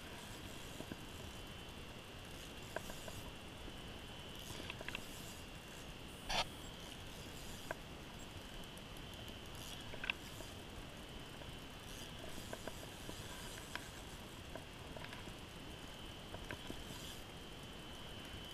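A fishing reel clicks and rattles close by.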